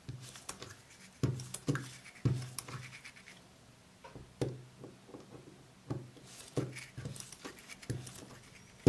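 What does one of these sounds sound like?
Small plastic parts click and rattle as fingers turn them.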